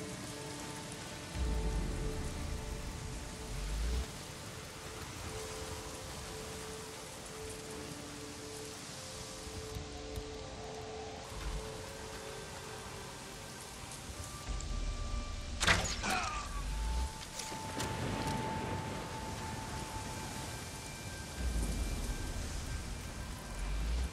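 Footsteps rustle through grass and undergrowth.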